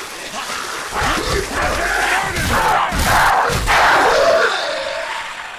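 Heavy blows thud against a body.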